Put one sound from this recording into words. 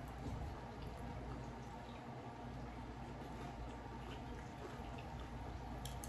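Tortilla chips crunch as young women eat.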